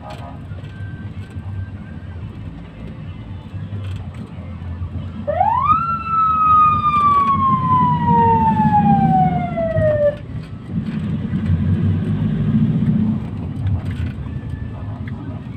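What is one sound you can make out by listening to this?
A vehicle engine rumbles steadily from inside a moving car.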